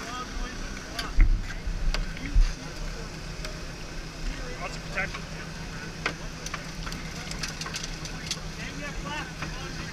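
Metal clicks and clanks against a car body.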